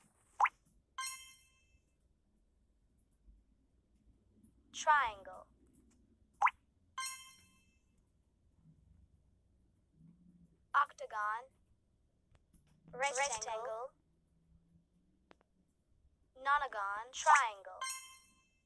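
A bright game chime rings out.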